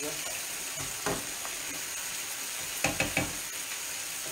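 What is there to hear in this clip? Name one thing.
A spatula scrapes and clinks against a pan.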